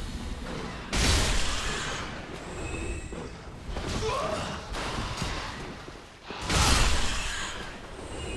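A sword swings and strikes flesh with heavy thuds.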